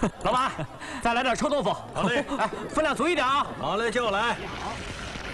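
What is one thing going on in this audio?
A man laughs loudly.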